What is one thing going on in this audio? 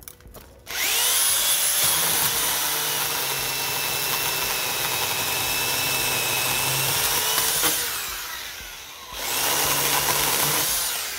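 An electric pole saw whines loudly as it cuts through a branch.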